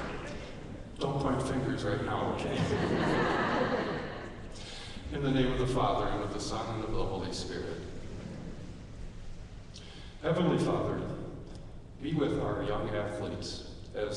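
A man speaks calmly through a loudspeaker in an echoing hall.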